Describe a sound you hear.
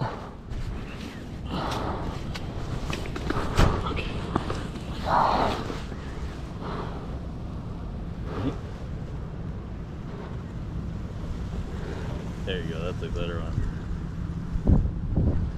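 Wind buffets a microphone outdoors with a low rumble.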